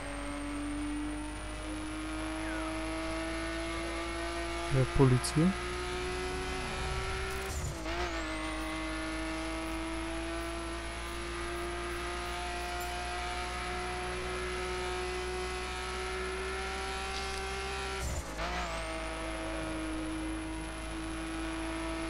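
A car engine roars steadily, rising in pitch and dropping as the gears shift.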